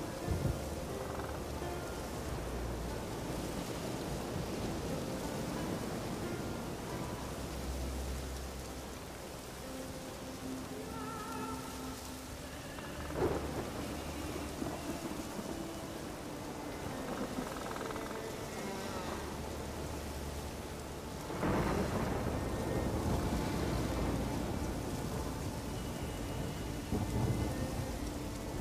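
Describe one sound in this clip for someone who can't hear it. A horse gallops steadily over soft ground.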